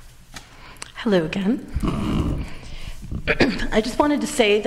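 A man speaks loudly through a microphone in a large room.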